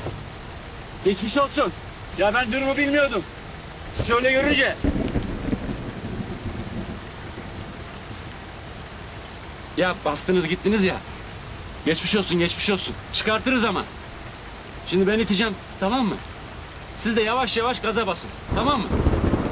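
A young man speaks loudly, muffled through a car window.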